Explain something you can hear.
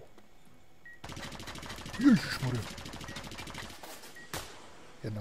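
Gunshots bang in an enclosed space.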